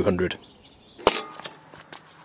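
A metal grill lid clanks shut.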